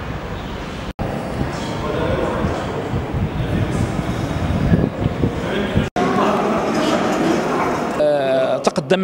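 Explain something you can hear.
A crowd of people murmurs and chatters in an echoing hall.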